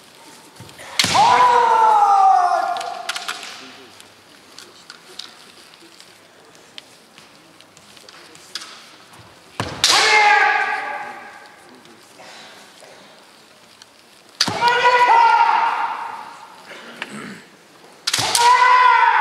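A bamboo sword cracks on armour.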